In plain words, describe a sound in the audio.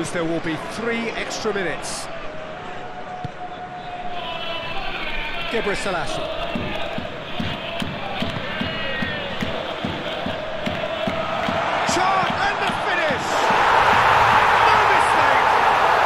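A large crowd murmurs and chants throughout.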